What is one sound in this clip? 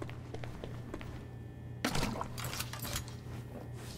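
Water runs from a tap into a bucket.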